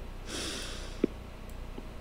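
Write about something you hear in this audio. A young woman giggles softly near a microphone.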